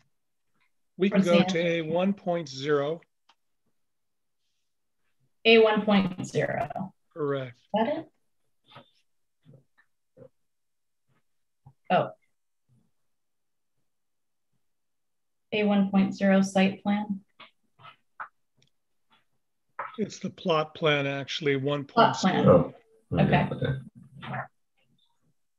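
An elderly man speaks calmly through an online call, in short bursts with pauses.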